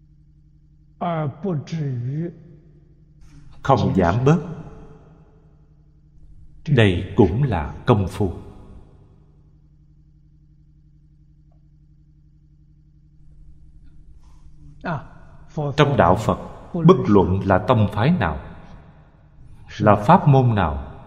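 An elderly man speaks calmly into a microphone in short phrases with pauses.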